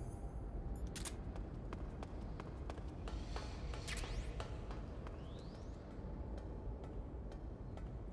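Footsteps clank on metal ladder rungs as a climber goes up.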